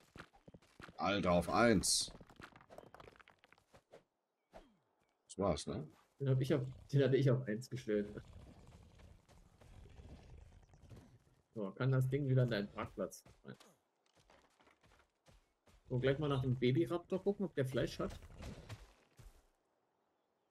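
A young man talks casually and with animation into a close microphone.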